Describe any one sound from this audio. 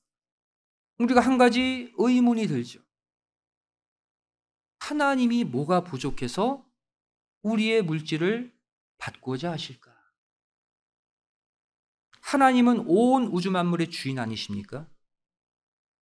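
A middle-aged man speaks calmly through a microphone, in short phrases with pauses.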